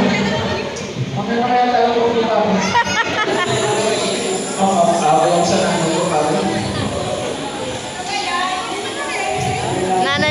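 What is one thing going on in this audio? A young man sings through a microphone in a large echoing hall.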